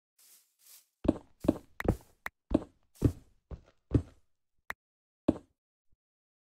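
Blocks are broken with crunching thuds.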